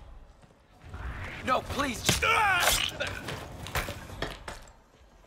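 A man grunts and struggles in a scuffle.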